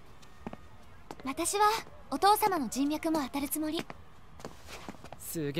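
A young woman speaks brightly.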